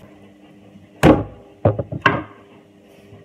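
A wooden cutting board knocks sharply against hard surfaces.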